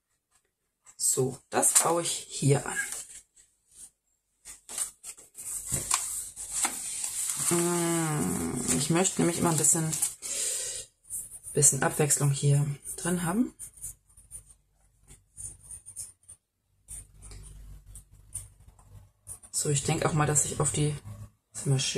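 Paper rustles and crinkles as pages are turned and handled.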